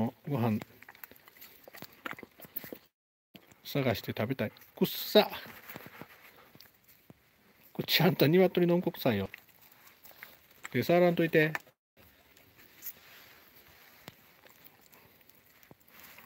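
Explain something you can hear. A dog chews a treat.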